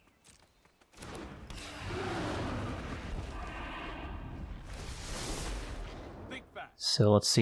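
Magical energy crackles and whooshes.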